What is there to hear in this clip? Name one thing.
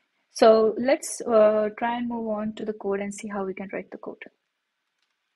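A young woman talks calmly and clearly into a close microphone.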